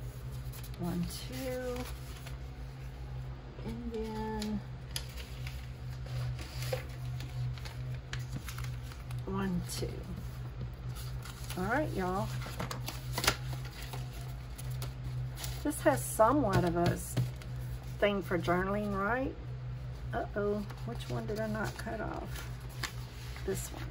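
Sheets of paper rustle and flap as they are handled.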